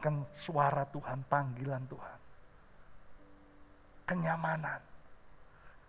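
A middle-aged man speaks with animation into a microphone in a large hall.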